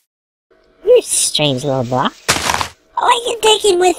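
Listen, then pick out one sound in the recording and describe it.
A block of dirt breaks with a crunch.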